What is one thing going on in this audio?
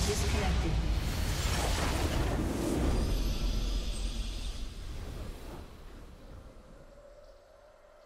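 A deep explosion in a video game booms, then rumbles and fades away.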